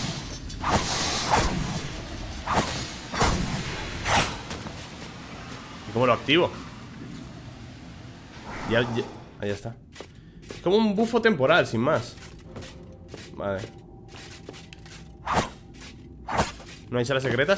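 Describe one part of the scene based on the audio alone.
Sword slashes and impacts clash in quick bursts.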